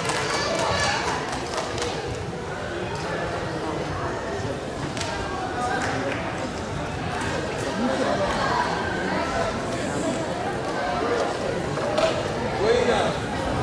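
Children's footsteps patter across a wooden stage.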